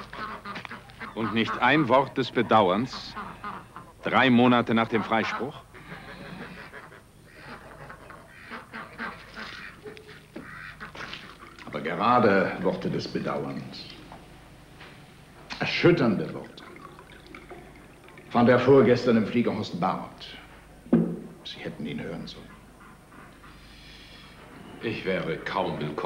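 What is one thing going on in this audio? An older man speaks calmly and firmly.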